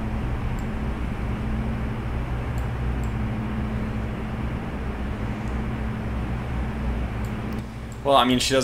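A large ship's engine rumbles steadily.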